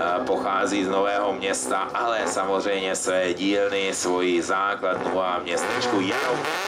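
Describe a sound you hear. Exhaust pops and bangs crackle from a racing car.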